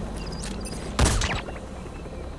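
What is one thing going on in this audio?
A rifle shot cracks sharply.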